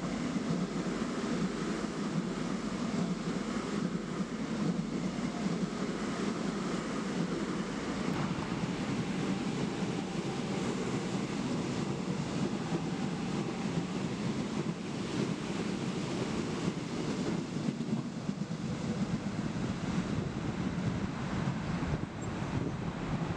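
A train rumbles steadily along the tracks nearby.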